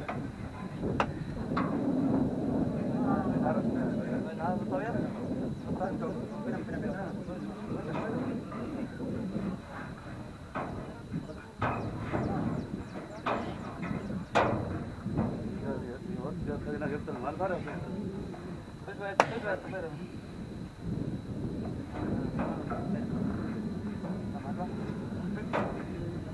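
Metal bars clank and knock now and then.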